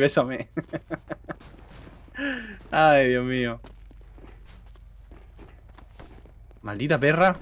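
A young man talks with animation into a close microphone, with sudden loud exclamations.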